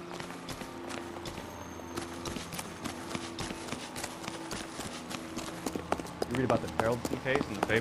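Footsteps run quickly over grass and paving.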